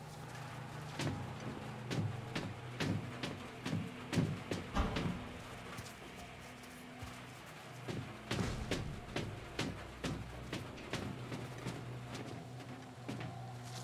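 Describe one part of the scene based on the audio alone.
Footsteps thud slowly and steadily on a hard floor.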